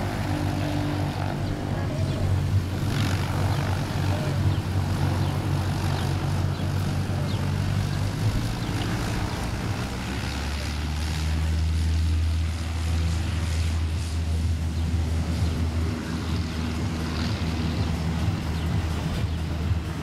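A small propeller plane's engine drones and roars as the plane speeds down a runway and takes off.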